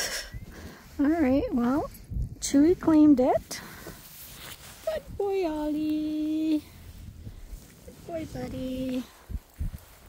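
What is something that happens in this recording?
A small dog whines and yelps close by.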